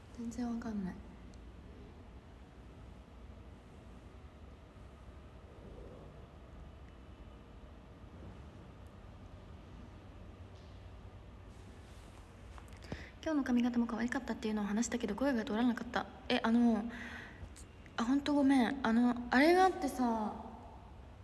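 A young woman speaks close to a microphone with animation.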